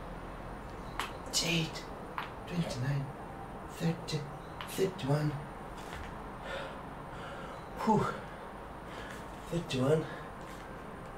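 A young man grunts with effort close by.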